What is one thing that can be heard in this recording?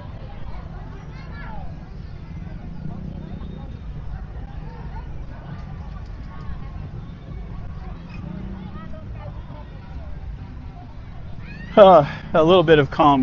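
Many people chatter and murmur outdoors in the distance.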